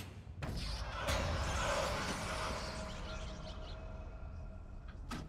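A burst of gas hisses loudly from a box.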